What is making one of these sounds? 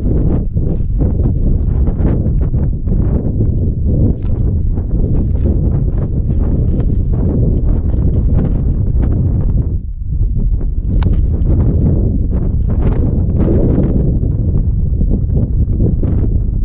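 Skis scrape and crunch over snow.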